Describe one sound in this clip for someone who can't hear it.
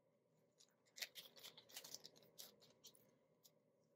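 Coins clink softly as they are handled.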